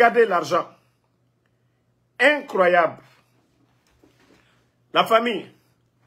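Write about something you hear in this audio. A man speaks close by with animation, in short bursts.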